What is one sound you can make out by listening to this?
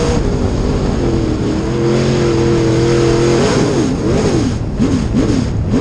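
A race car engine roars loudly up close, revving up and down.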